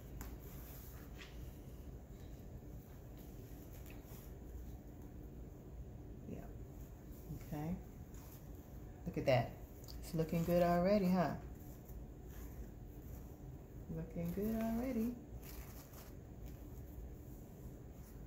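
Ribbon rustles softly as hands fold and bunch it.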